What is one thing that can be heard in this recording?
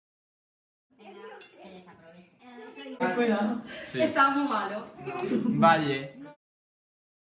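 Children and young people talk and laugh close by.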